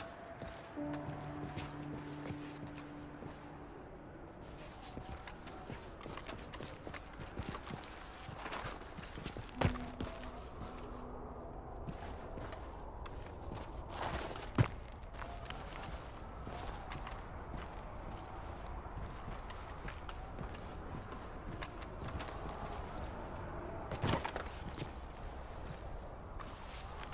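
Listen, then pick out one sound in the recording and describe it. Boots scrape and step on rock.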